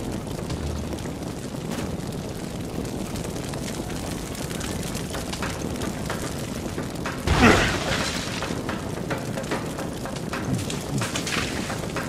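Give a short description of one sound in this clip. Footsteps run across a hard stone floor.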